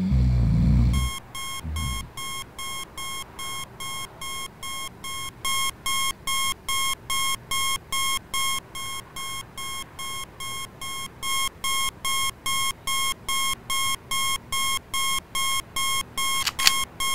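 An alarm clock beeps rapidly and insistently.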